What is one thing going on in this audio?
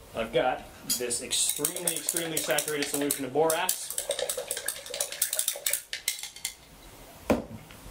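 A spoon stirs and clinks against a glass beaker.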